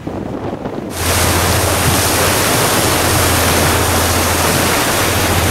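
A bow wave splashes and hisses loudly.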